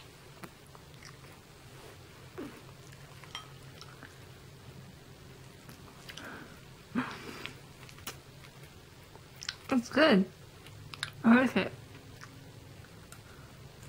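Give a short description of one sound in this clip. A woman chews food with her mouth open.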